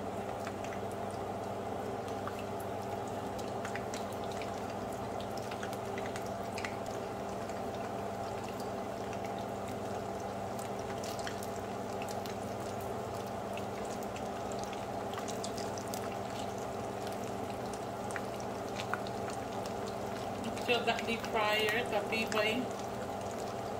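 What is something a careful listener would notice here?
Wooden chopsticks tap against a pan.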